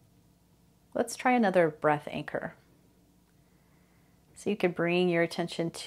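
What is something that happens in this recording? A woman speaks calmly and softly into a microphone.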